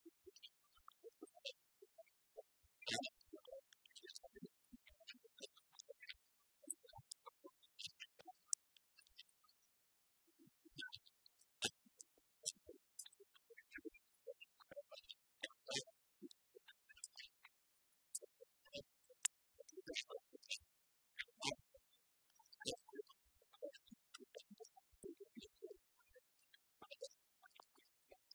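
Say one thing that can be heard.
Keys click on laptop keyboards.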